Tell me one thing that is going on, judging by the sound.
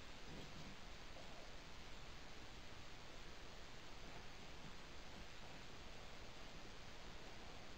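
Cotton fabric rustles as it is handled.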